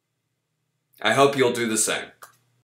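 A young man speaks briefly and clearly, close to the microphone.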